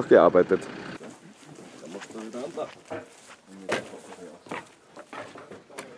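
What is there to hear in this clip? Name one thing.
Crates knock and clatter as they are unloaded from a trailer.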